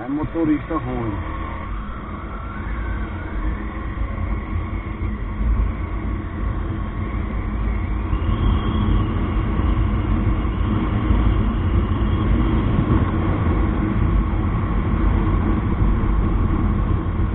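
Wind rushes loudly past the rider, growing stronger as speed builds.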